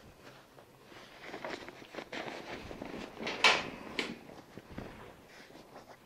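A cotton sheet rustles as it is tucked and smoothed.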